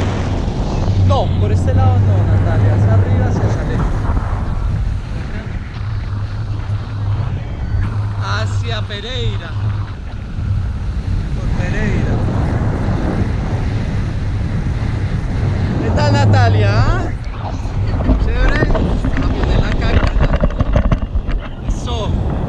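A woman talks and laughs close by, her voice partly buried by the wind.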